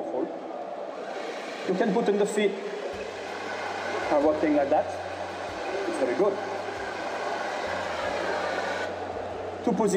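A gas torch flame hisses steadily.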